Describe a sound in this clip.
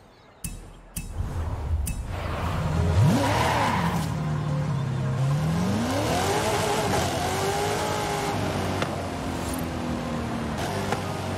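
A car engine revs up and roars steadily.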